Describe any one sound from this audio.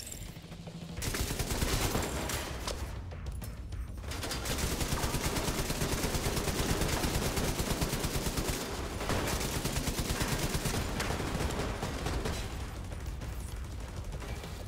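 A rifle fires rapid bursts of shots that echo in a large hall.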